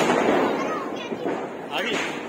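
Fireworks crackle and pop overhead.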